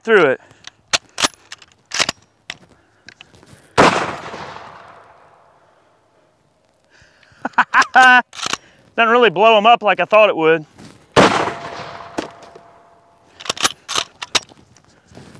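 A shotgun's action clacks as it is worked and loaded.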